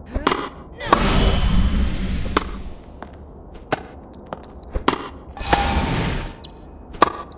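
Game sound effects whoosh during shots.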